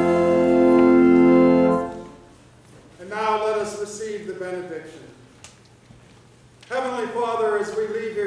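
A choir sings together in a large echoing room, holding long notes between phrases.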